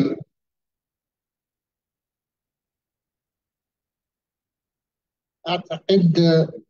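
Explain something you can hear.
A man speaks through an online call microphone.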